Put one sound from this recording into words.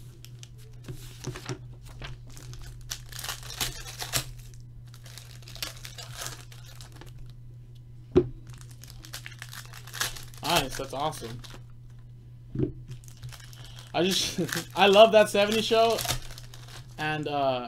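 Foil card wrappers crinkle and tear as they are opened.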